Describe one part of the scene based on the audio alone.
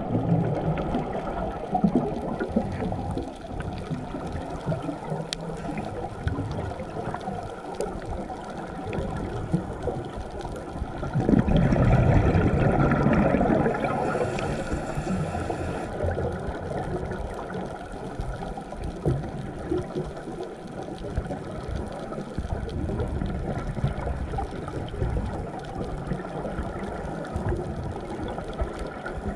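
Muffled water rumbles and crackles steadily underwater.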